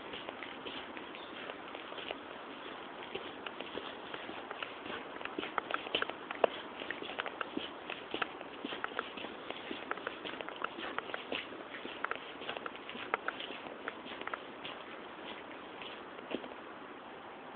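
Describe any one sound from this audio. Footsteps tread on a wet paved path.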